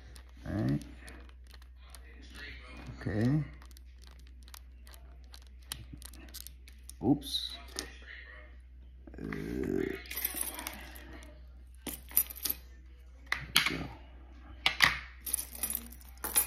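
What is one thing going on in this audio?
Small plastic parts click and snap as a key fob is opened.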